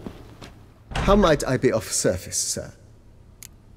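A middle-aged man speaks calmly in a low voice.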